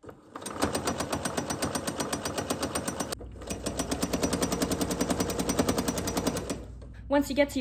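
A sewing machine stitches rapidly in a fast, even rhythm.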